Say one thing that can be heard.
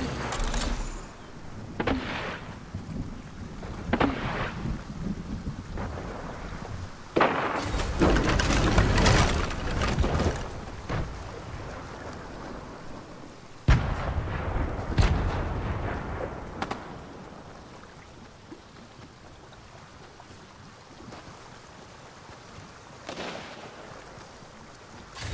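Quick footsteps patter on concrete as a game character runs.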